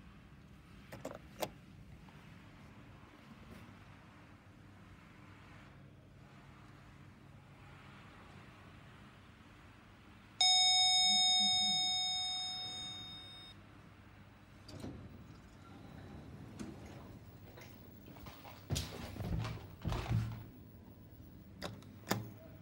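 An elevator button clicks as it is pressed.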